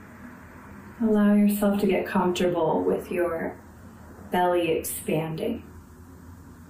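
A woman speaks softly and calmly, close to a microphone, with long pauses.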